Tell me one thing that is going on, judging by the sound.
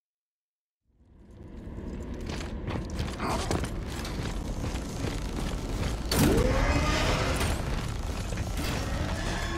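Heavy armoured footsteps clank on a metal floor.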